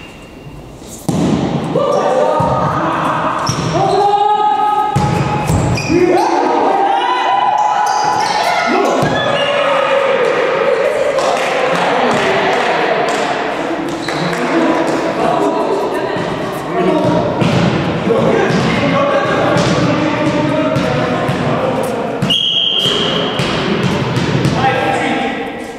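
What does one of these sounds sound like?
A volleyball is struck with sharp slaps and thuds in an echoing hall.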